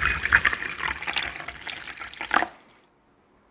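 Tea pours and splashes into a glass.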